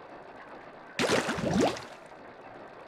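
A wet, squishy splash bursts as a character lands.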